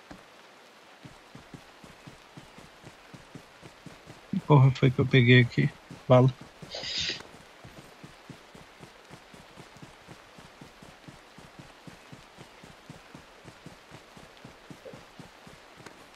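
Footsteps rustle through grass at a steady pace.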